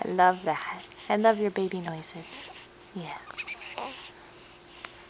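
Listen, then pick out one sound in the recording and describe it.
A baby coos and babbles softly, close by.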